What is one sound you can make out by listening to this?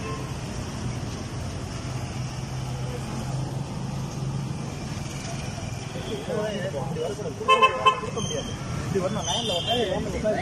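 Traffic hums steadily along a street outdoors.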